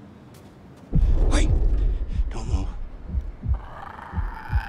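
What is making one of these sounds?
A man shouts sharply.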